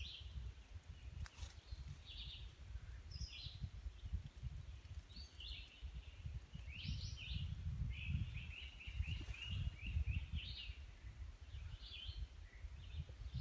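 A bird calls repeatedly nearby.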